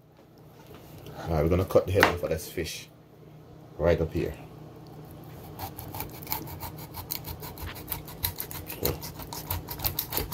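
A knife crunches through a fish's bones on a cutting board.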